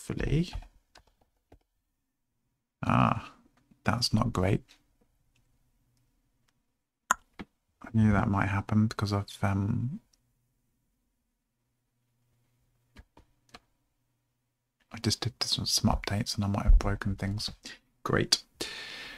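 A man speaks calmly and close into a microphone, in short bursts.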